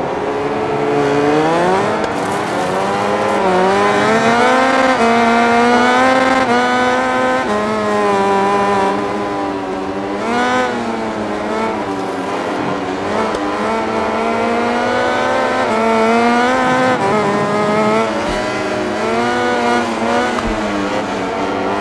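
A motorcycle engine revs high and shifts through the gears, rising and falling in pitch.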